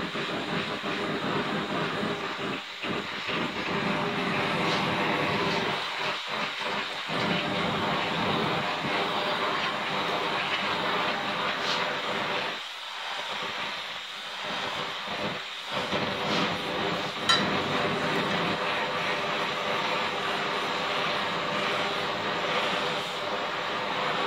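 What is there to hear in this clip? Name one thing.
A gas torch flame hisses and roars steadily close by.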